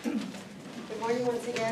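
A woman speaks into a microphone in a room with a slight echo.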